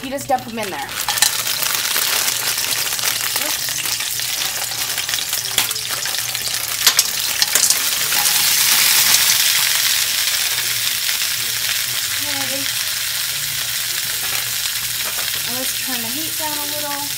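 Food sizzles loudly in hot oil in a pan.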